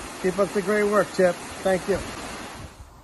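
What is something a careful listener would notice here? A man speaks cheerfully close to a microphone.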